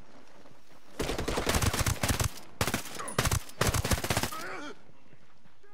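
A rifle fires in loud rapid bursts close by.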